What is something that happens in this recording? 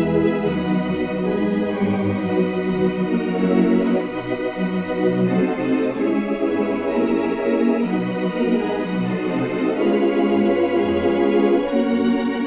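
An organ plays a slow, sustained melody with full, held chords.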